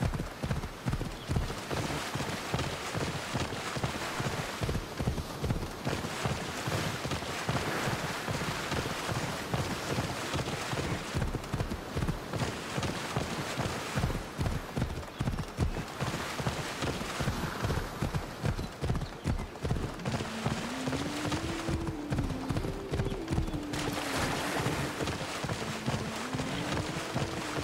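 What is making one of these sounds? A horse gallops with quick, heavy hoofbeats.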